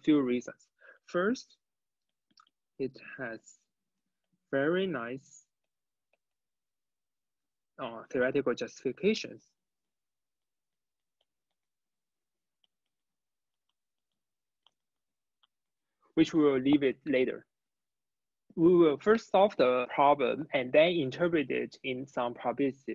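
A young man speaks calmly into a close microphone, in bursts with long pauses.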